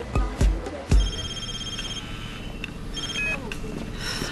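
A mobile phone beeps with a short electronic tone.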